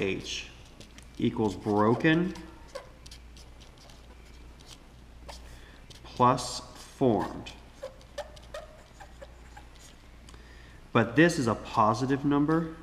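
A felt-tip marker squeaks and scratches on paper.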